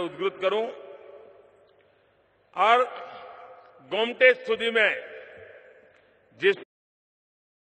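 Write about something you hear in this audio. An elderly man speaks slowly and forcefully into a microphone, his voice echoing through loudspeakers.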